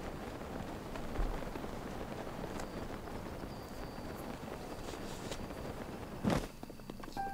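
Wind rushes past a paraglider in flight.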